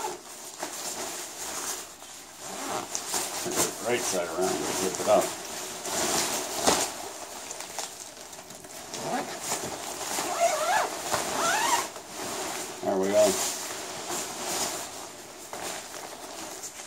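Fabric rustles and swishes as it is handled.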